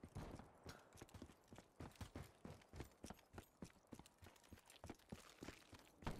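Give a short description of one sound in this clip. Footsteps crunch in snow.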